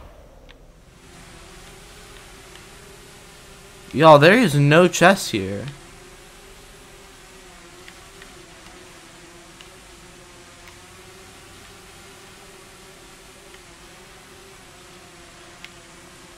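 Soft piano music plays steadily.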